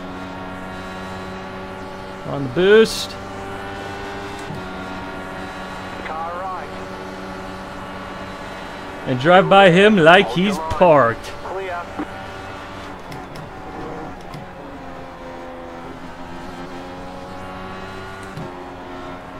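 A racing car engine drones steadily at high revs, rising and falling in pitch through gear changes.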